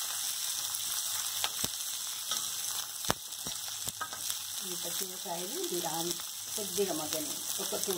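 A metal spoon scrapes and clinks against a pan.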